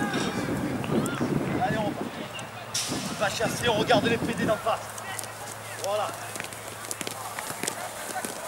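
Footsteps of many people jog on grass.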